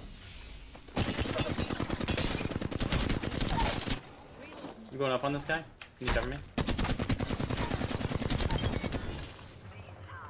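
Rapid gunfire bursts loudly.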